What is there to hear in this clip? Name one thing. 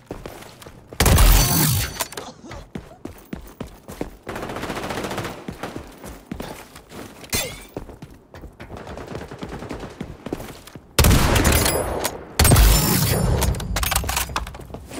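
Gunshots from a rifle crack in a video game.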